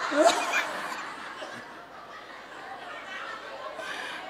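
A middle-aged man laughs heartily into a microphone.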